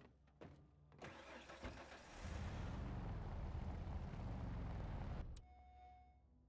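A truck engine revs and roars as the vehicle drives off.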